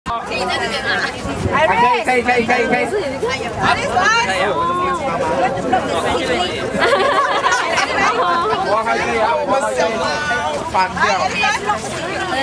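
A crowd of men and women chatter and call out close by, outdoors.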